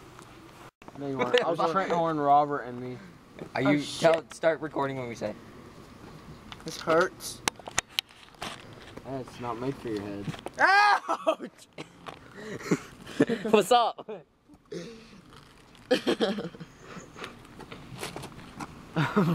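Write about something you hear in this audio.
A teenage boy talks and laughs close by.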